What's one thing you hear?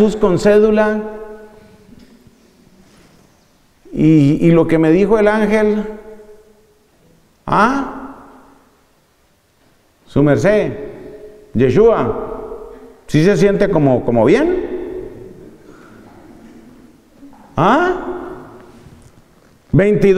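A man speaks with animation into a microphone, in bursts with pauses, in a room with a slight echo.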